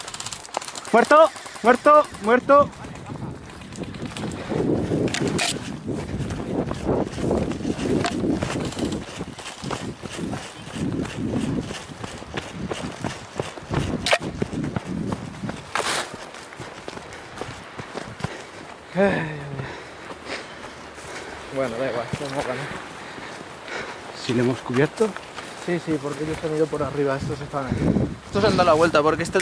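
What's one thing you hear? Footsteps crunch and rustle through dry brush close by.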